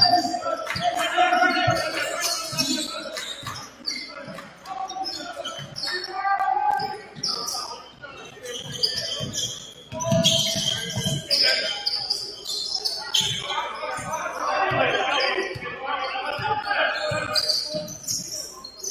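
A basketball bounces on a hard court in an echoing gym.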